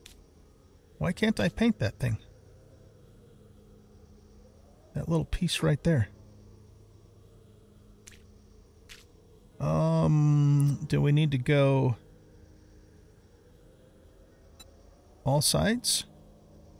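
A man talks animatedly into a microphone, in short bursts.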